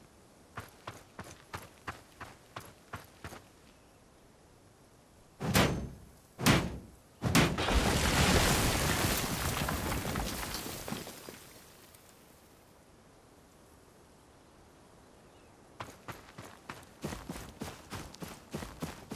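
Footsteps crunch on dirt.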